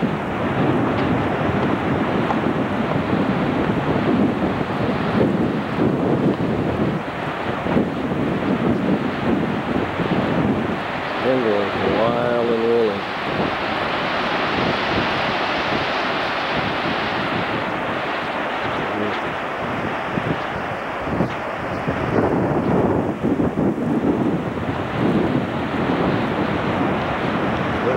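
Waves wash onto a beach in a steady rush.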